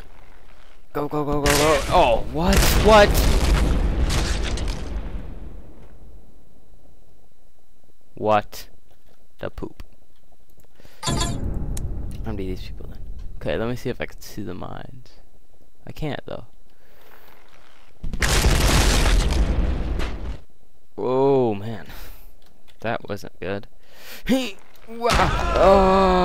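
Loud explosions boom and crackle.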